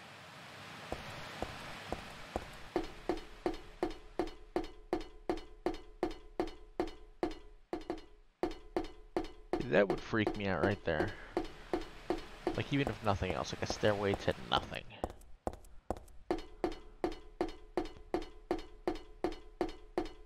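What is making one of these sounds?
Footsteps thud steadily on hard steps.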